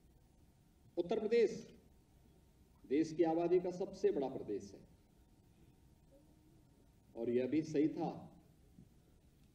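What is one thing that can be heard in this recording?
A middle-aged man speaks firmly into a microphone in phrases with pauses.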